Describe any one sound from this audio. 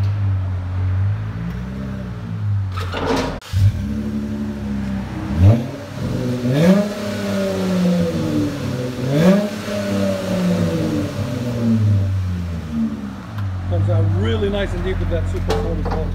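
A car engine idles with a deep exhaust rumble and revs up sharply several times.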